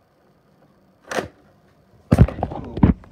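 Plastic parts of a disc player knock and clunk.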